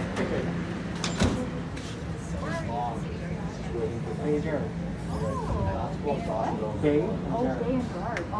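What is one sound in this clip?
A subway train rumbles as it rolls slowly into a station.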